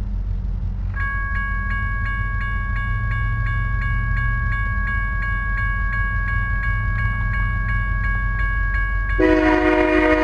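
A railway crossing bell rings in a fast, steady rhythm.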